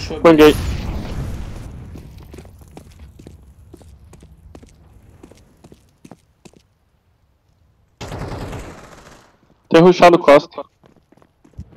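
Footsteps patter quickly on stone paving.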